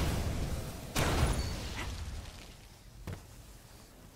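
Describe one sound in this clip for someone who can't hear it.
A gun fires loud, sharp shots.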